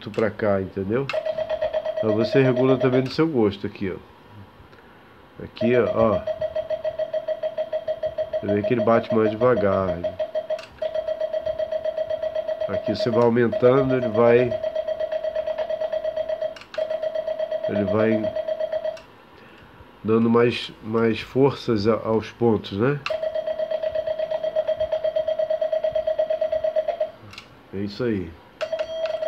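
A Morse key clicks under a finger.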